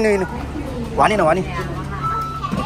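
A fare card reader beeps.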